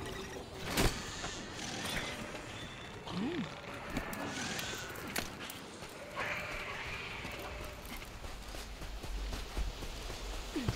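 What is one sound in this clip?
Footsteps patter quickly over rocky ground.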